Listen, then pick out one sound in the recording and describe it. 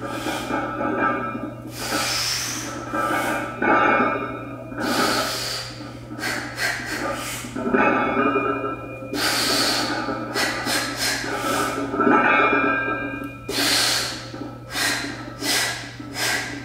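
A man grunts and breathes hard with effort.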